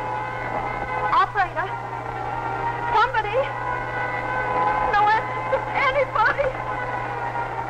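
A woman talks into a telephone with animation, close by.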